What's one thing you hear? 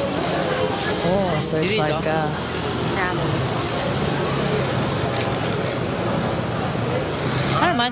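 A busy street crowd murmurs all around.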